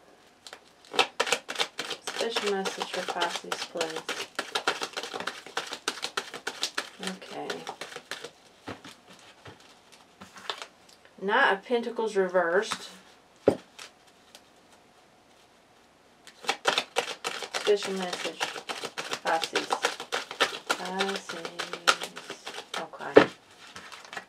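Playing cards are shuffled with quick, crisp flicking.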